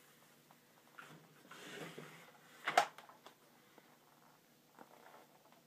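A wooden concertina knocks and clicks as it is handled up close.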